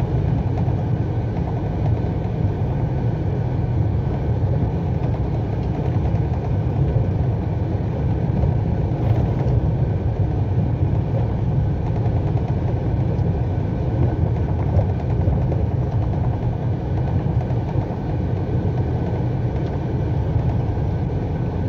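Tyres rumble over a rough, potholed road.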